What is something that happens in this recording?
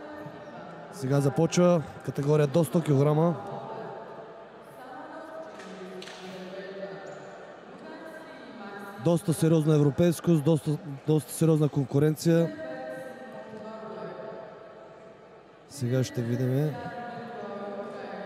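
A man calls out loudly over a loudspeaker in a large echoing hall.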